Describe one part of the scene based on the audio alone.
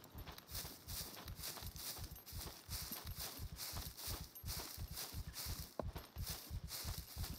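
Footsteps rustle through dry grass at a steady walking pace.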